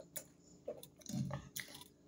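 A middle-aged woman speaks calmly close to a microphone.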